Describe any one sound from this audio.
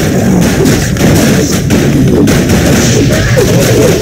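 Weapons clash and spells burst in a game battle.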